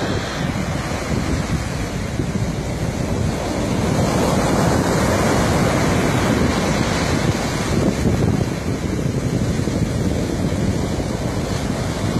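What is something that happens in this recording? Waves break and wash up onto a beach.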